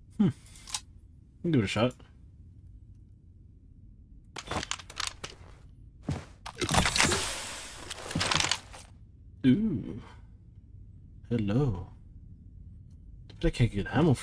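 A gun's metal parts click and clack as a weapon is handled.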